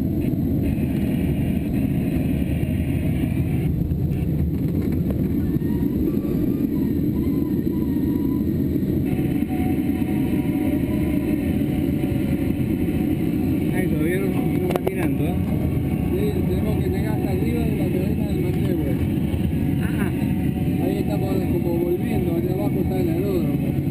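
Wind rushes steadily and loudly past a glider's canopy in flight.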